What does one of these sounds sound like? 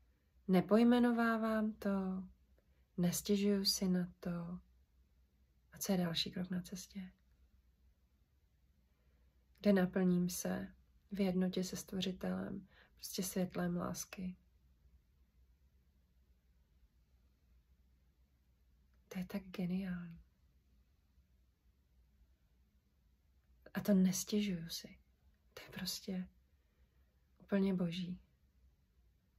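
A woman speaks calmly and close up, with pauses between phrases.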